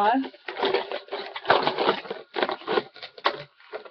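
Lettuce leaves rustle.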